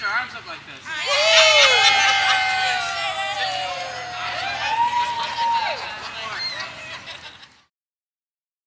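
A crowd of young people cheers loudly.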